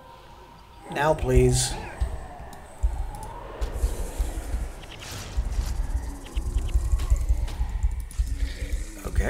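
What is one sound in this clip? Fighting sounds from a computer game clash and crackle.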